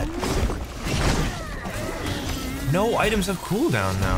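Heavy blows and magic blasts crash in a fight.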